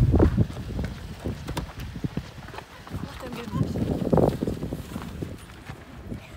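A car door handle clicks and the door swings open.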